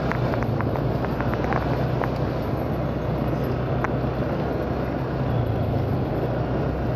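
An engine drones steadily while riding along.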